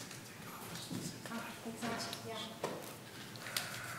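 Footsteps shuffle as a woman walks away from a microphone.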